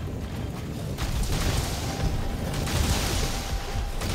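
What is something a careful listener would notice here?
Fire crackles and hisses.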